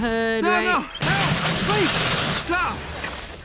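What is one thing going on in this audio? Water sprays hard and hisses.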